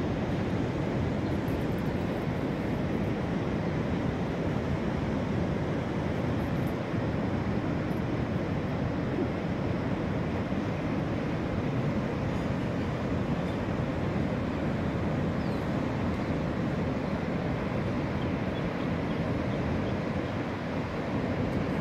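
Ocean waves break and roar steadily in the distance.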